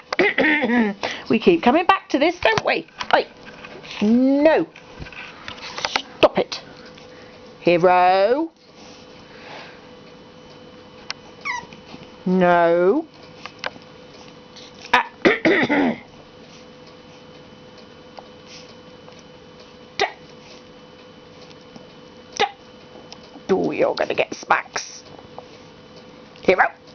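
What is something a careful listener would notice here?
A puppy licks a bare foot with soft wet smacks.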